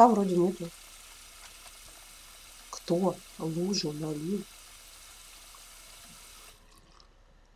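Water runs steadily from a tap.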